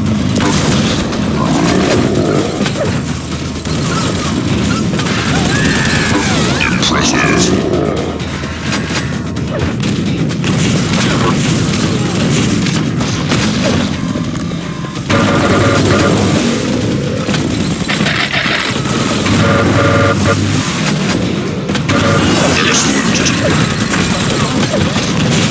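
Weapons fire in rapid bursts with loud explosions.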